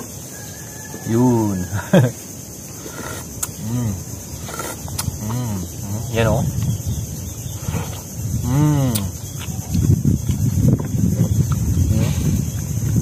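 A young man slurps and chews clams up close.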